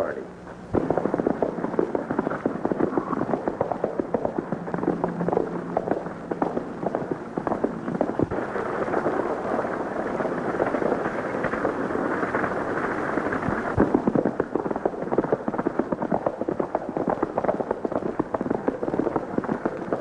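Horses' hooves pound along at a gallop.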